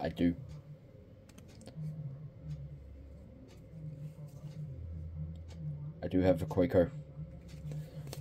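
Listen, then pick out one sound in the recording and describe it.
Playing cards rustle and slide against each other in a hand.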